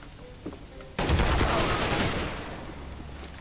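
A rifle fires a rapid burst.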